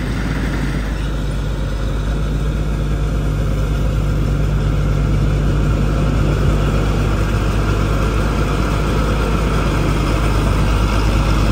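A combine harvester's diesel engine rumbles steadily close by and grows louder as the harvester approaches.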